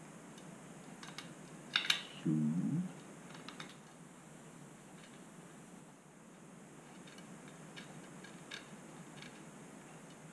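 Metal spokes click and tick against each other.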